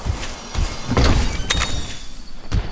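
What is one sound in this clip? A treasure chest creaks open.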